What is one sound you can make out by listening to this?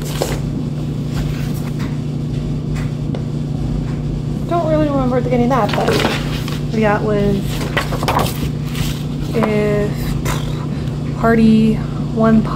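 Paper rustles and crinkles as booklets are handled.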